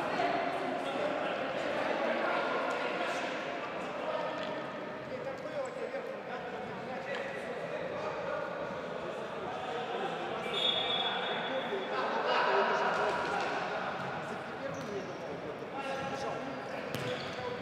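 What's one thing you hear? Players' shoes squeak on a hard floor in a large echoing hall.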